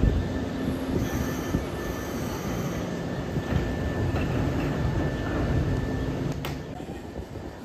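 Train brakes squeal as the train comes to a stop.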